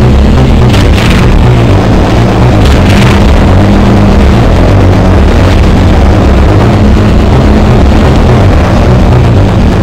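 Loud video game music plays throughout.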